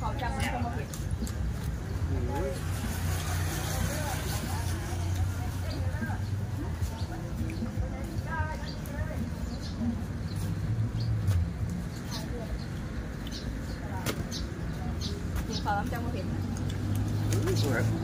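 Crisp vegetables crunch as people chew.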